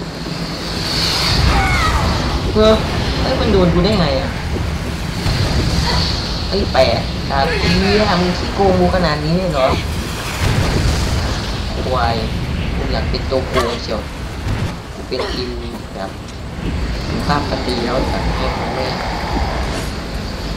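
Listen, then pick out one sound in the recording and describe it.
A man speaks tensely and close by.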